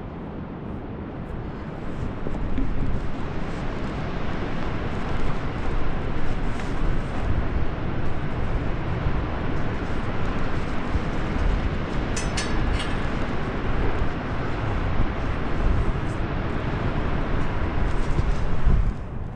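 Strong wind roars into a microphone outdoors.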